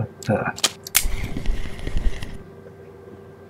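A fishing reel whirs briefly as line is wound in.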